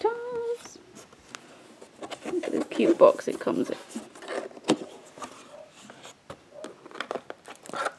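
A cardboard box lid knocks and scrapes.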